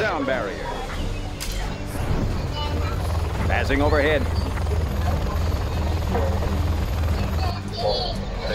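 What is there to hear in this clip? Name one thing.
Helicopter rotors thrum steadily.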